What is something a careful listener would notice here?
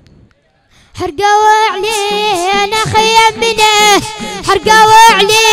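A group of young male voices chants loudly in unison through loudspeakers.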